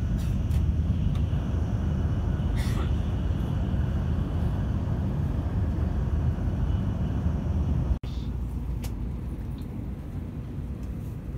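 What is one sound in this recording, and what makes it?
A train rumbles along the tracks with a steady low roar.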